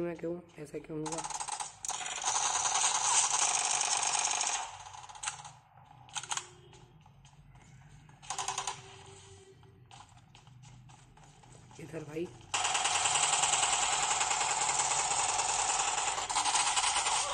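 Rapid gunfire from a mobile game plays through a small phone speaker.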